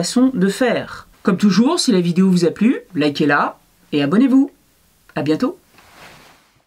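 A woman speaks with animation close to a microphone.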